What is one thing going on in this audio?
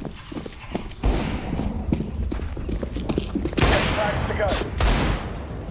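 A sniper rifle fires loud, booming shots.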